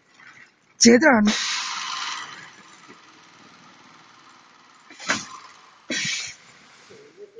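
A pneumatic machine hisses with sharp bursts of air.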